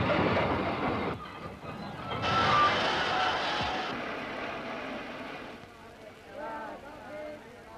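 A crowd bustles and murmurs.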